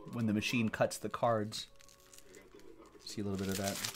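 A plastic strip rips through cardboard wrapping.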